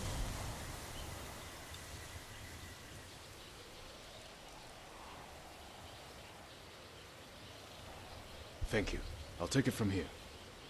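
Wind blows steadily through tall grass outdoors.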